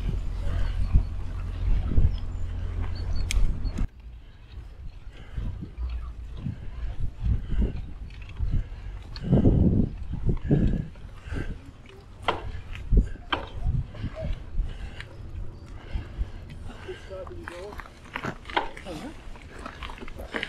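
Bicycle tyres crunch over a gravel path.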